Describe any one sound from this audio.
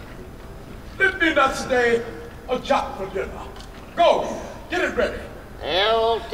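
A group of men sing together through microphones.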